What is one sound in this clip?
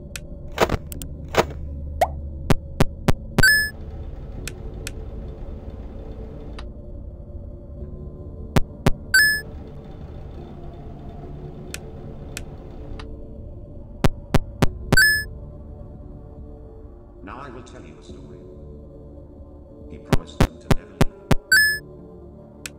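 Sharp clicks come in quick bursts.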